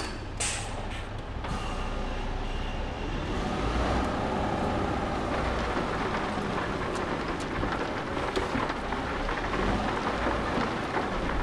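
A truck engine hums and rumbles steadily.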